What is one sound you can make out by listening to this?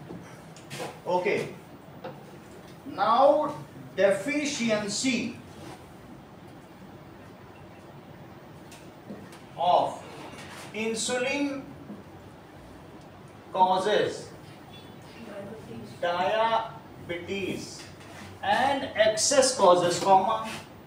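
A man speaks calmly in a lecturing tone, close by, in bursts with pauses.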